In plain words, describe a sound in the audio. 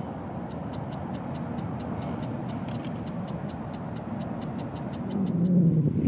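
A small bird calls nearby with short, evenly repeated ticks.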